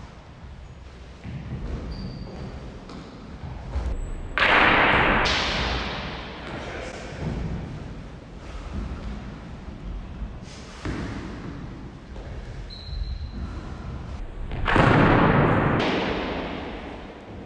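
Feet stamp and shuffle on a wooden floor.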